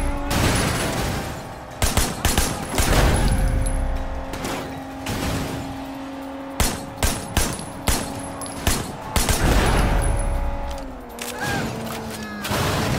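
A car engine roars as it speeds along.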